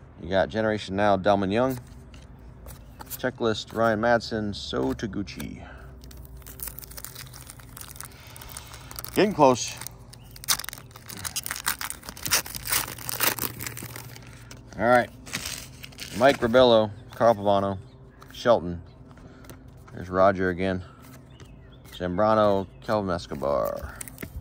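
Trading cards rustle and slide against each other in a hand.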